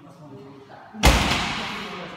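Heavy weight plates thud and clank onto the floor.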